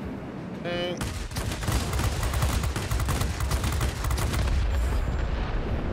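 Aircraft cannons fire in rapid bursts.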